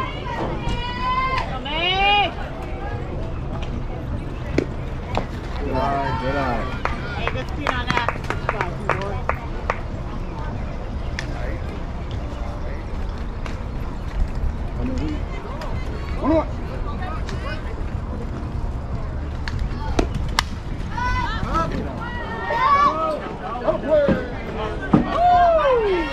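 Young girls shout and cheer outdoors.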